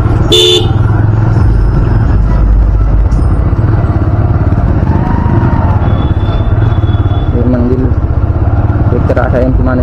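A motorcycle engine hums steadily close by.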